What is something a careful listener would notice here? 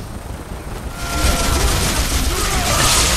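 Fighters clash and grunt in a battle.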